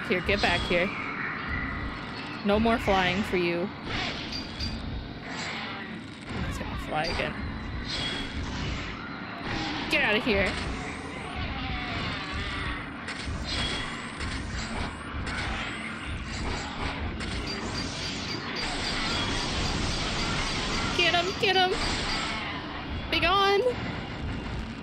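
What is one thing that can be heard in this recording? A young woman speaks with animation into a microphone, close up.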